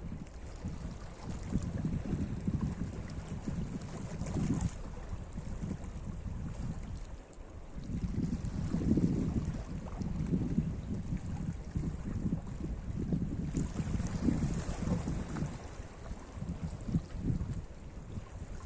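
Wind blows across the microphone in gusts.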